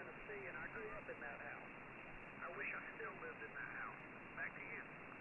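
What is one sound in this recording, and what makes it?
Radio static hisses steadily through a receiver.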